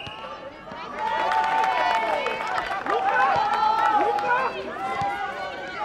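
A crowd cheers after a goal.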